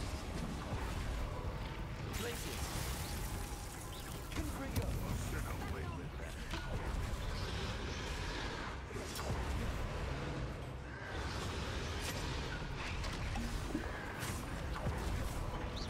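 Blasts of magic whoosh and crash.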